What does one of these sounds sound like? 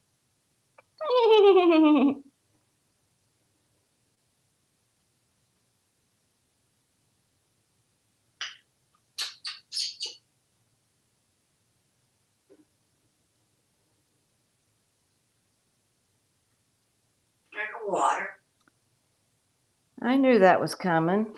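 A parrot whistles and chatters in a small room.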